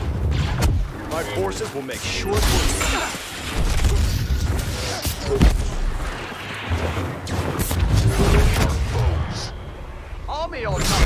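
Deep booming battle noise rumbles throughout.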